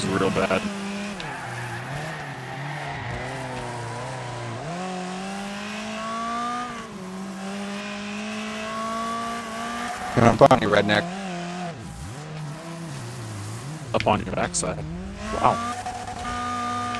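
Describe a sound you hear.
A racing car engine roars and whines, rising and falling as it shifts gears.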